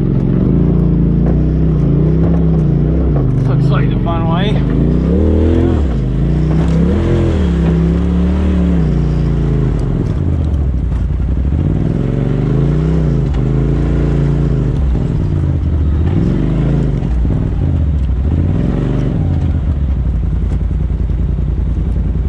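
An off-road vehicle's engine revs up and down close by.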